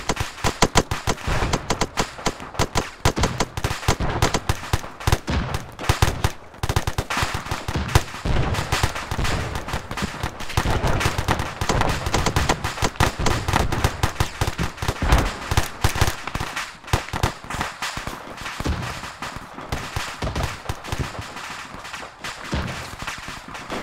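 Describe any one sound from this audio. Rapid gunfire crackles and pops all around.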